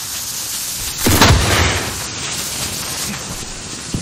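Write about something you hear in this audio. An explosion booms nearby, followed by a rumble.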